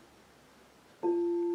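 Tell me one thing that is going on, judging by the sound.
A metal singing bowl is struck and rings with a clear, lingering tone.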